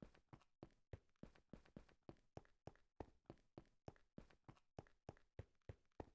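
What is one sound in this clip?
Quick footsteps crunch steadily on stone.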